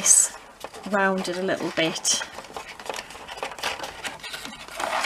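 Stiff paper rustles and creases under fingers.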